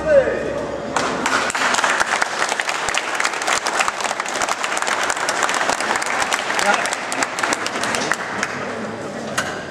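A crowd applauds with steady clapping.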